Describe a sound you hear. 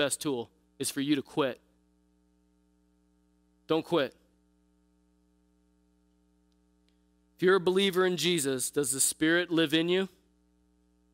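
A man speaks calmly through a microphone in a large room, pausing between phrases.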